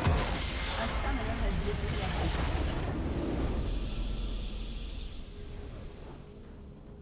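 A loud rumbling blast booms and slowly fades.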